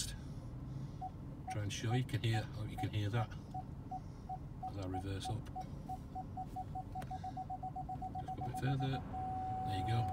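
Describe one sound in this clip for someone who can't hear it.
A parking sensor beeps, slowly at first and then faster and faster, until it becomes one steady tone.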